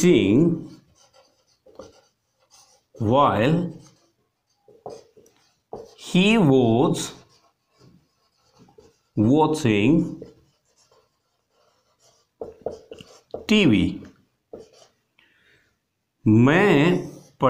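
A man speaks slowly and clearly close by, in short phrases with pauses.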